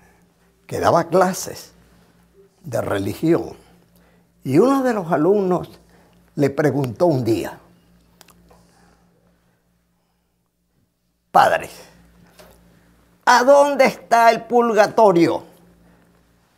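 An elderly man preaches forcefully through a microphone, in short emphatic bursts with pauses.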